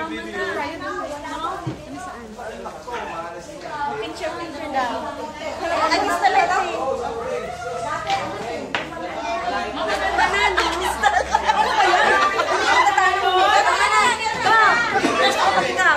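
Several women chatter and laugh together nearby.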